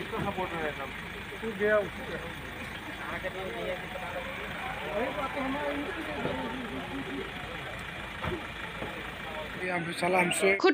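Several men talk at once outdoors, some distance away.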